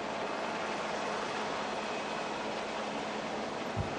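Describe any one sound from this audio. A helicopter's rotor thuds steadily overhead.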